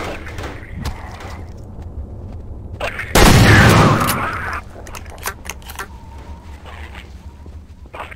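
A gun fires repeated shots.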